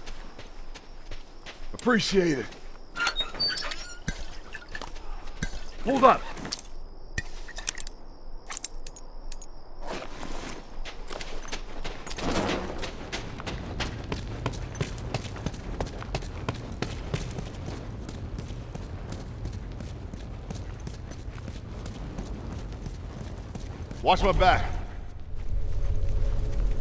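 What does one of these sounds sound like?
Footsteps run over hard ground.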